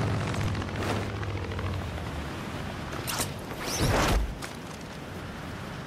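Wind rushes past during a fast glide through the air.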